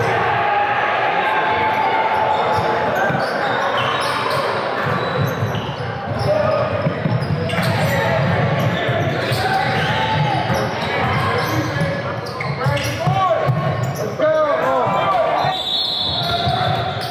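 Spectators chatter in an echoing gym.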